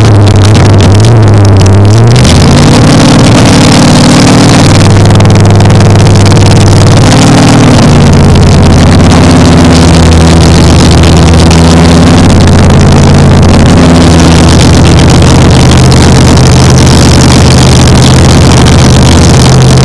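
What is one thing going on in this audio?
A race car engine idles and revs loudly.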